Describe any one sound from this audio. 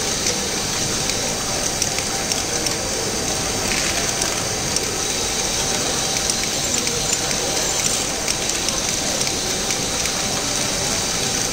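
A toy machine whirs and clicks as its arm moves.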